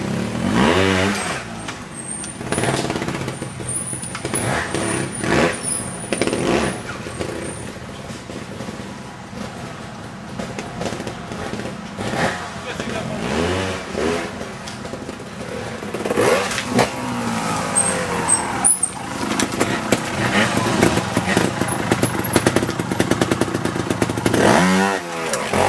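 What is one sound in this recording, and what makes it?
A motorbike engine revs up and down in short bursts.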